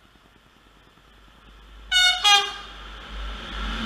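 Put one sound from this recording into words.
A train rumbles closer along the tracks, growing louder.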